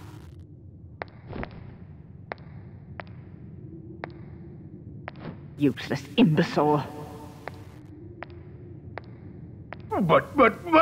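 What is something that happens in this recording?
Footsteps click slowly and evenly.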